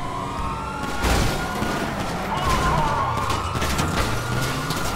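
Tyres screech as a car skids.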